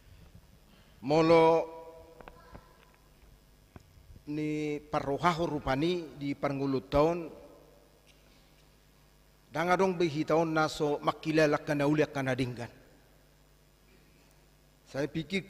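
A middle-aged man preaches into a microphone with emphatic pauses, in a large echoing room.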